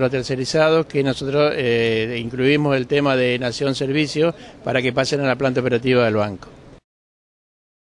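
A middle-aged man speaks calmly into a microphone close by.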